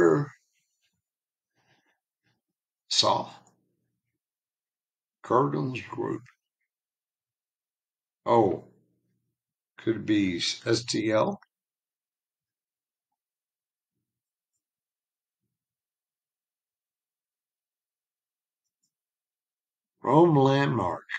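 A man speaks calmly close to a microphone, in short bursts with pauses.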